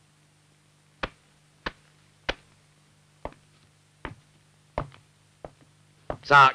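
Footsteps knock on a wooden floor and fade away.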